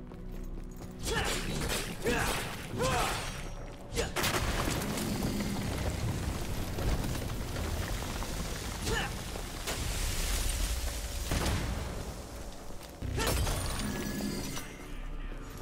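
Sword blows slash and clang in a fight.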